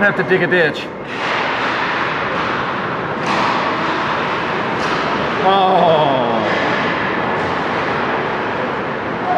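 Ice hockey skates scrape across the ice in a large echoing arena.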